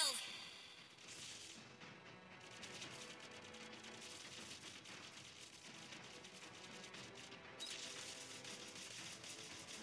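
Game fight effects clash, zap and crackle rapidly.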